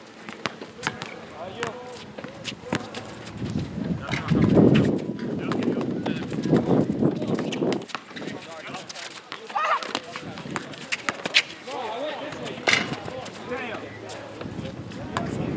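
A basketball bounces on an outdoor court with sharp thuds.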